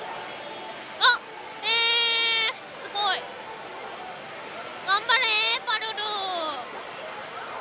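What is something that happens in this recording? A slot machine plays loud electronic jingles and chimes.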